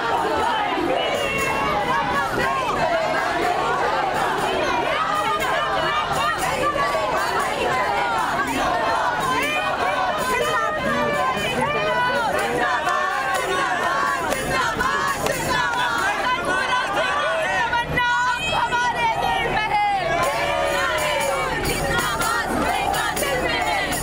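Many men and women talk and shout together nearby.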